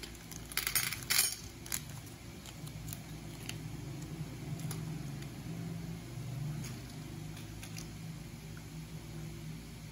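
Small candies click against a plastic lid.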